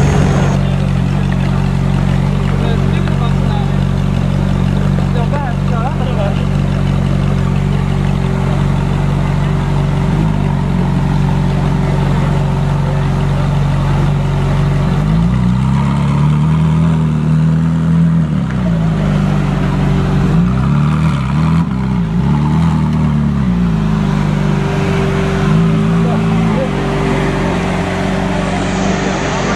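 A sports car engine idles with a deep, throbbing rumble close by.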